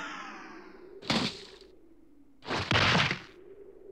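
A young boy gasps.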